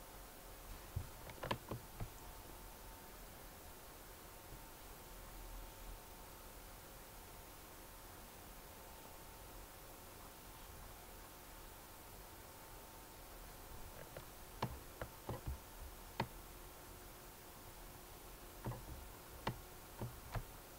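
Short sharp clicks sound as chess moves are made.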